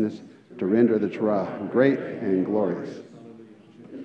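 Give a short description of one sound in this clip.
A man chants in a strong, melodic voice through a microphone, echoing in a large hall.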